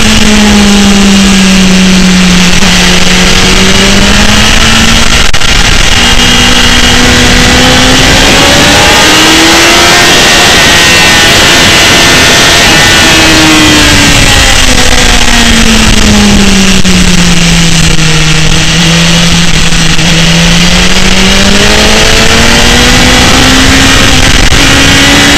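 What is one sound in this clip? A motorcycle engine roars, its pitch rising and falling as the bike speeds up and slows down.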